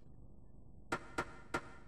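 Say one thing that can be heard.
Short electronic menu beeps sound in quick succession.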